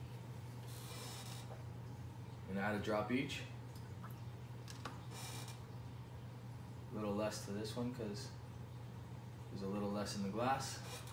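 Glassware clinks lightly.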